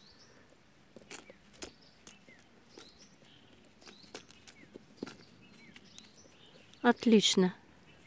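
A hand pats down loose soil.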